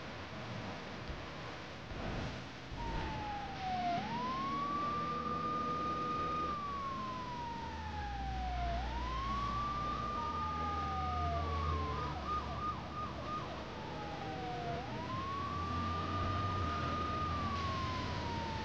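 A car engine hums steadily.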